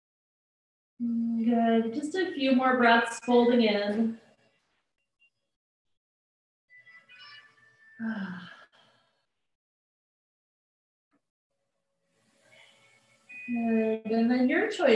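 A woman speaks calmly, heard over an online call.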